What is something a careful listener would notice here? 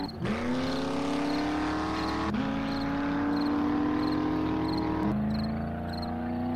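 An engine revs up in rising steps as gears shift.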